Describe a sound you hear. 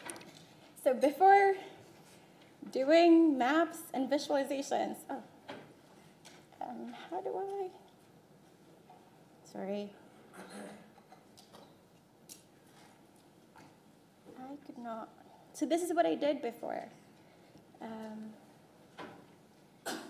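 A young woman speaks calmly through a microphone, with pauses.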